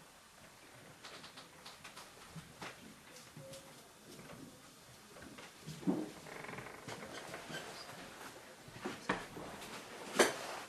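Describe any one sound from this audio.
Something small clicks and rustles in a man's hands.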